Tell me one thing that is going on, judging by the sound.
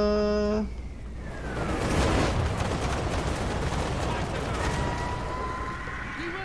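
A magical blast whooshes and crackles.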